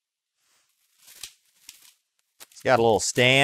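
A plastic case rustles and clicks in hands.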